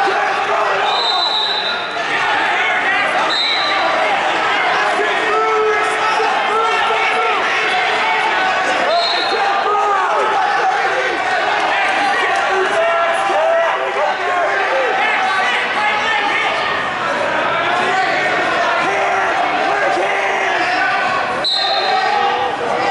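Sneakers squeak sharply on the mat.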